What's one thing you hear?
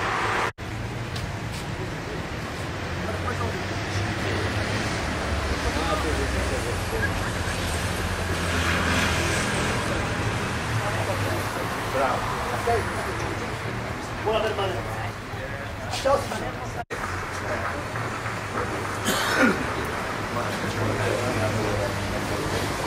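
A crowd of people murmurs indoors.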